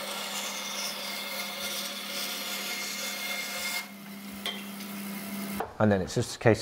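A band saw hums steadily while cutting wood.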